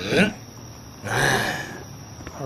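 A creature growls.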